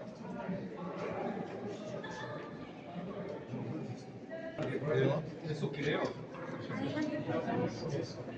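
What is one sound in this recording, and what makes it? Many men and women chatter at once in a large echoing hall.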